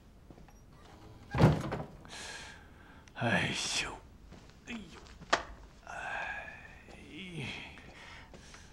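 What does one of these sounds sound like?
An older man speaks calmly, close by.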